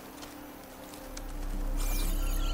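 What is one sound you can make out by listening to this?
An energy beam hums and crackles with a rising roar.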